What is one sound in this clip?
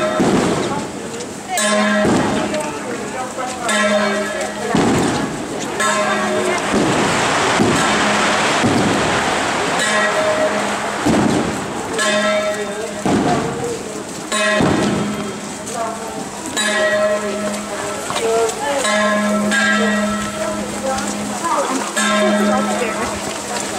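Many footsteps shuffle along a street as a crowd walks in procession.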